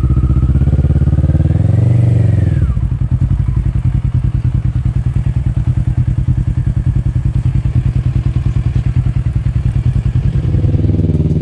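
A motorcycle engine idles close by with a steady, chugging throb.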